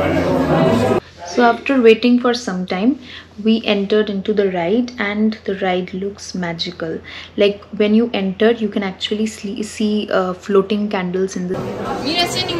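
A young woman talks calmly and closely into a microphone.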